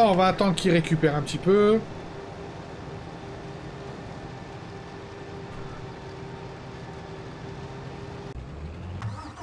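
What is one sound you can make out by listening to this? A harvester engine hums steadily.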